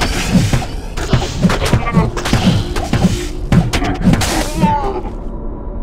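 Magic spells crackle and explode.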